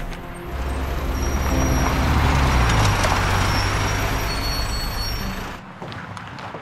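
Bus tyres roll on the road.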